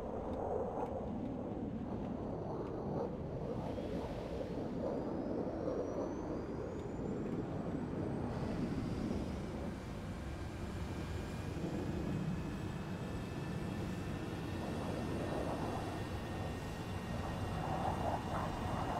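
A propeller plane's engine drones steadily throughout.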